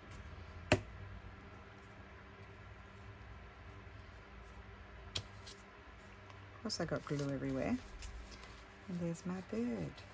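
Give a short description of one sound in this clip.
Paper rustles and crinkles softly under hands.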